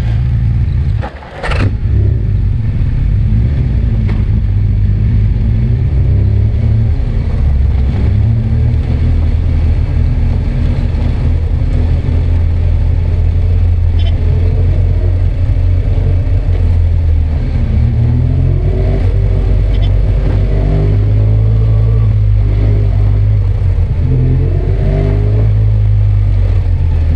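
A motorcycle engine drones steadily, its pitch rising and falling.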